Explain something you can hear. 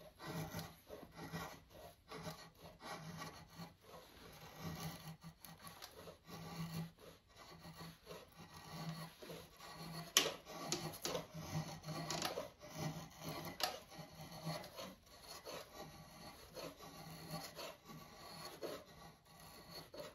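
A blade shaves wood in short, repeated scraping strokes.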